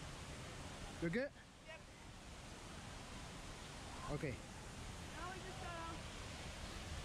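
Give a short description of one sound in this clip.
A boy speaks briefly nearby.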